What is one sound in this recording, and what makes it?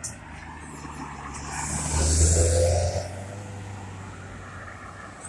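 Cars pass close by on a paved road, swelling and fading.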